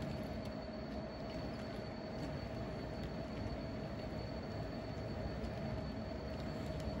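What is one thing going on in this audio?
Small wheels click over rail joints.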